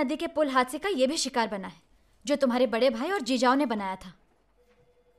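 A woman speaks firmly and with animation, close by.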